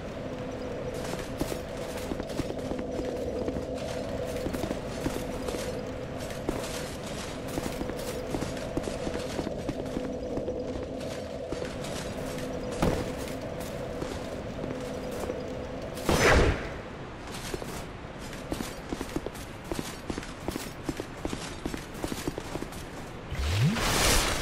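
Armoured footsteps clank quickly on stone.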